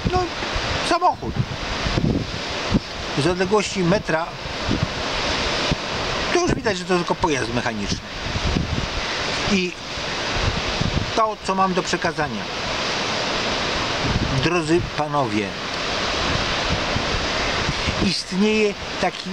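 Wind blows hard across the microphone.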